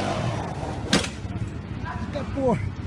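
A quad bike crashes to the ground with a thud.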